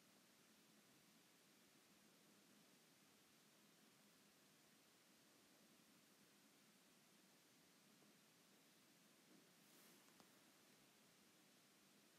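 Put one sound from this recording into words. A plastic bag crinkles softly as hands handle it.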